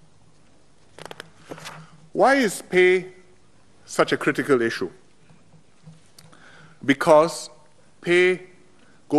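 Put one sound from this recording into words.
A middle-aged man speaks with emphasis into a microphone in a large hall, pausing between phrases.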